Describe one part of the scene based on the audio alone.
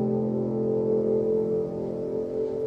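A piano plays a loud chord.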